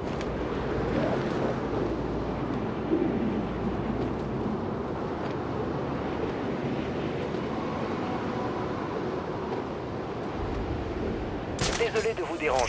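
Wind rushes loudly and steadily.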